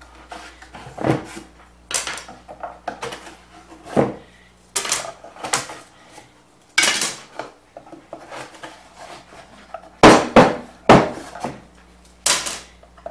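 Wooden boards knock and clatter against a table.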